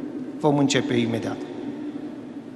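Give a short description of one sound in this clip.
A man's voice sings briefly over a loudspeaker in a large echoing hall.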